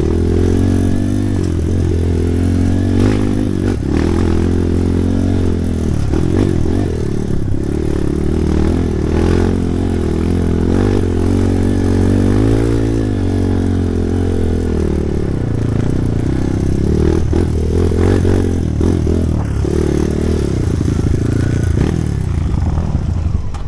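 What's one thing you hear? A dirt bike engine revs and growls up close, rising and falling in pitch.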